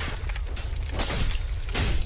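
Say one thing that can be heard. A firebomb bursts with a roaring whoosh.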